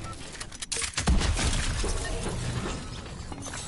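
Gunshots bang loudly at close range.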